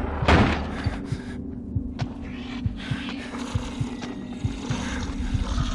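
Slow, heavy footsteps thud on a wooden floor.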